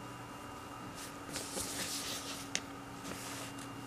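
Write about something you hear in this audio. Paper rustles and crinkles.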